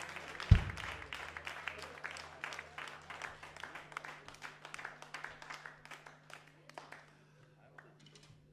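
An audience claps, then the applause fades away.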